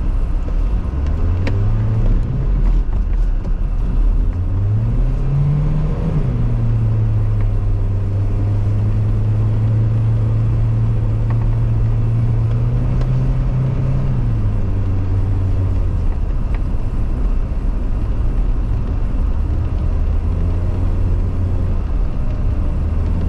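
Tyres crunch and rumble over packed snow.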